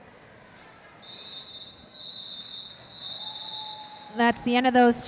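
A referee's whistle blows in several shrill bursts.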